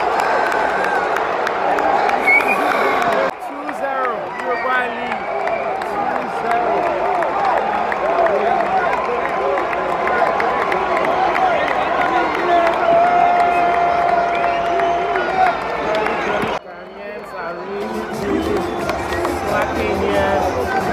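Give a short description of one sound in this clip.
A large crowd cheers and sings loudly in a big echoing stadium.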